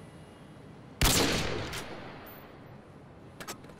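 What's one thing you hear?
A bolt-action sniper rifle fires a single shot in a video game, with a long echo.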